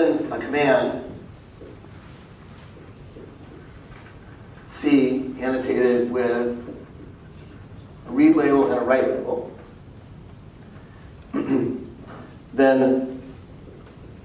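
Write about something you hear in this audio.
A man speaks calmly in bursts.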